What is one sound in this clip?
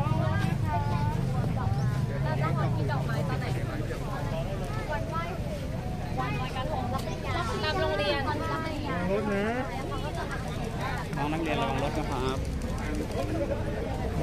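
Young women chat with animation close by.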